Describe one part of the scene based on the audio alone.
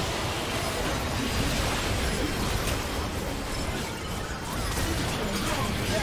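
Spell effects whoosh and blast in a fast battle.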